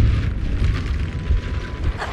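Flames roar and crackle close by.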